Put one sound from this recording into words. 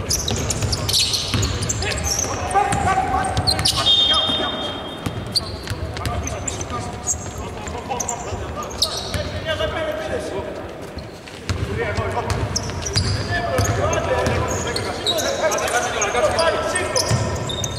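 Sneakers squeak on a hardwood court in a large echoing arena.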